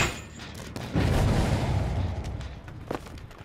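A burst of flame roars and slowly fades.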